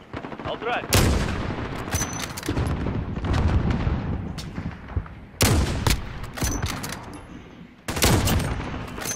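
A rifle fires loud single shots with a sharp crack.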